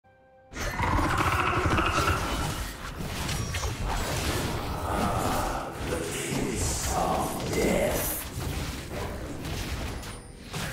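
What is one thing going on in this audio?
Game combat sound effects clash and crackle.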